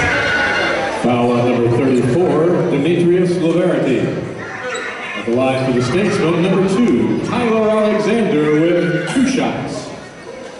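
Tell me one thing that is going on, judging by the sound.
Nearby spectators talk loudly among themselves.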